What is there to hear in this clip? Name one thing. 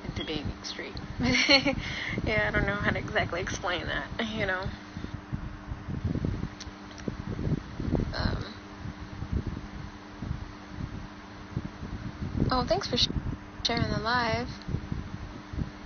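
A young woman speaks softly, close to a phone microphone.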